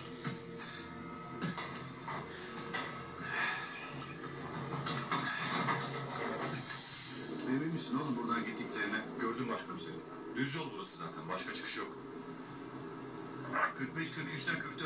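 A television drama plays through a small loudspeaker, with voices and music.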